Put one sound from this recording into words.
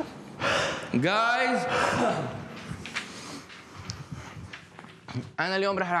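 A young man talks close by.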